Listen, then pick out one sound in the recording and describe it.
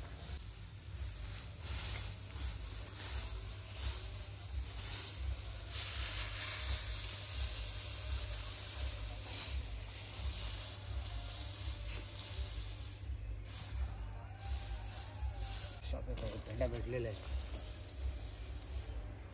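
Dry straw rustles and crackles as it is piled up.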